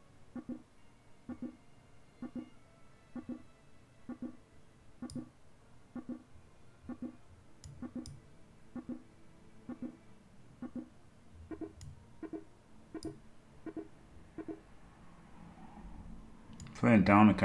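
A countdown timer ticks steadily.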